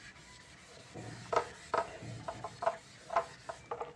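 An eraser rubs on a whiteboard.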